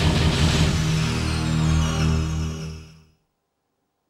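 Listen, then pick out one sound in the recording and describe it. Game music plays and fades out.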